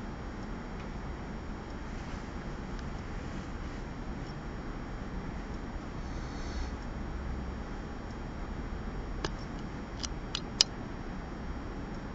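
A paintbrush taps and dabs softly on paper.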